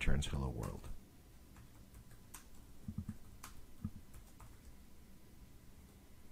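Keyboard keys click as someone types.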